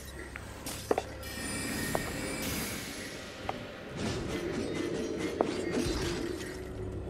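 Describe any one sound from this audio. Magic spells whoosh and crackle.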